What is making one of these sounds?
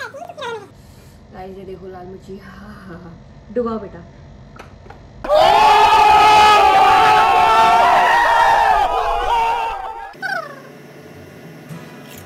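Two young women talk and exclaim close by.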